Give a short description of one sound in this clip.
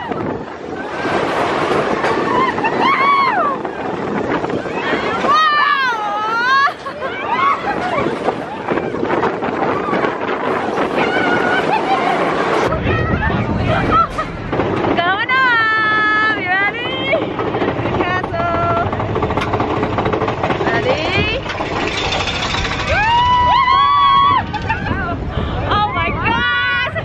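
A roller coaster train rattles and roars along its track.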